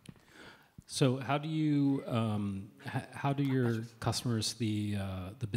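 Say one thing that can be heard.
A man speaks loudly and clearly into a microphone.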